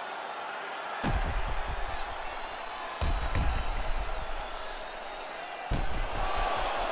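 Heavy punches thud against a body.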